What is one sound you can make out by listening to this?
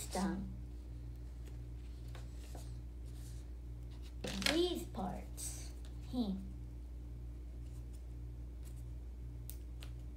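Paper crinkles softly as it is handled.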